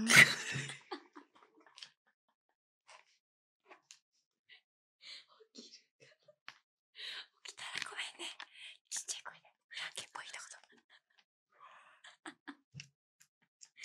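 Two young women laugh softly close to a microphone.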